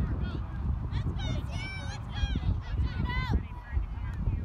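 Young girls and women shout and cheer excitedly outdoors nearby.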